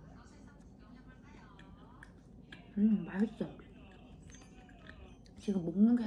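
A young woman chews and munches on soft bread.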